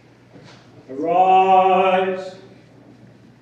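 A man chants a long, sung phrase.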